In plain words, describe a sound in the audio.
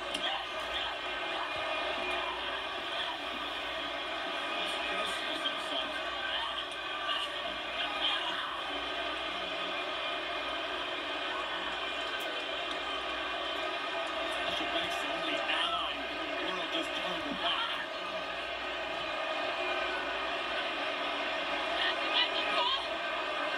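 A crowd cheers and shouts, heard through a television speaker.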